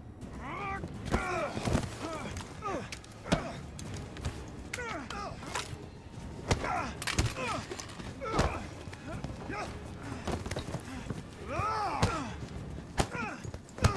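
Punches and blows land with heavy thuds.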